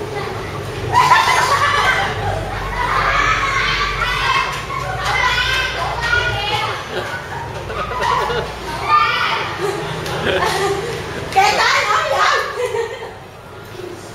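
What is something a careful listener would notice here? Children shout and chatter excitedly nearby.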